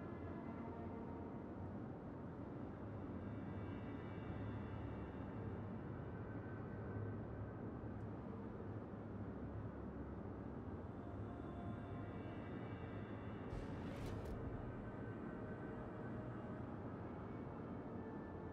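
Water rushes along a ship's hull.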